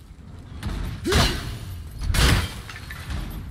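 A heavy metal blow clangs sharply.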